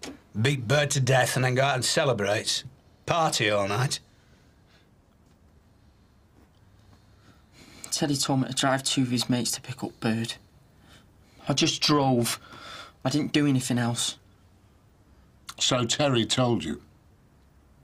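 A middle-aged man speaks calmly and firmly, close by.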